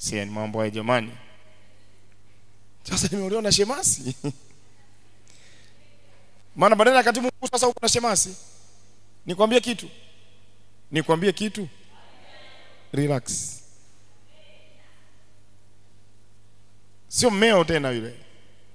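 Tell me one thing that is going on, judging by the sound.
A man speaks with animation through a microphone, pausing often.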